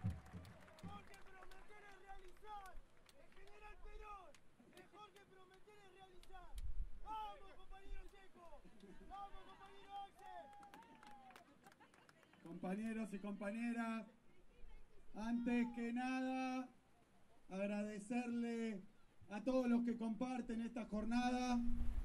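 A man speaks with animation through a microphone and loudspeakers outdoors.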